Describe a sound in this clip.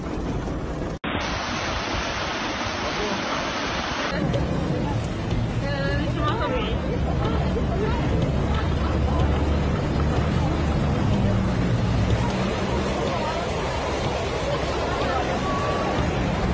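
Floodwater rushes and churns loudly.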